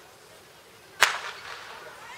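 A starting pistol fires once with a sharp crack.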